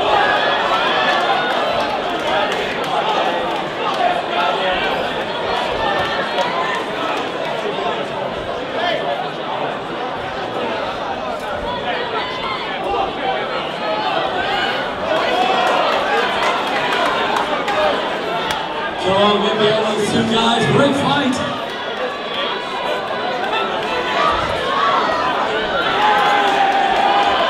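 A crowd chatters and shouts throughout a large echoing hall.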